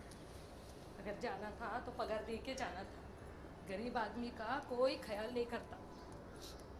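A middle-aged woman speaks calmly nearby.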